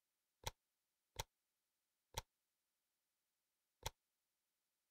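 Short game interface clicks sound a few times.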